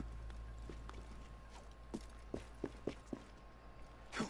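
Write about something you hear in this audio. Footsteps scrape and tap quickly on stone.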